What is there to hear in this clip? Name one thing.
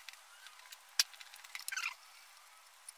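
Metal parts clink against a heavy metal housing.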